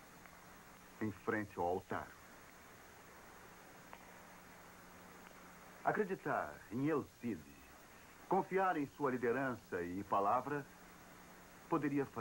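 A middle-aged man speaks calmly and clearly.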